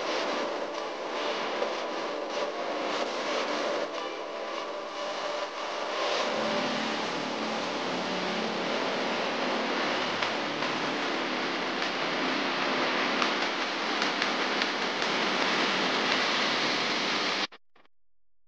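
Wind rushes loudly past the rider.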